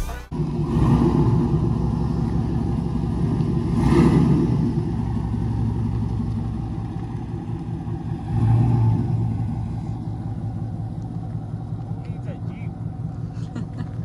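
A pickup truck's engine rumbles loudly and revs as the truck drives slowly past.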